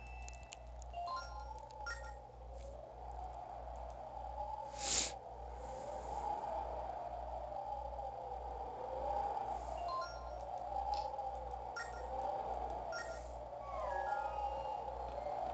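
Short bright chimes ring now and then.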